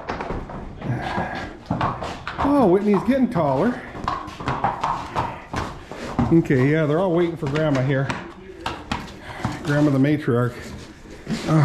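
Horse hooves clop on a hard floor.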